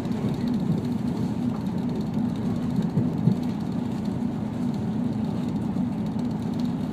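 A diesel railcar rumbles along the track, heard from inside the carriage.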